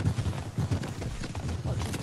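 A pickaxe chops at wood.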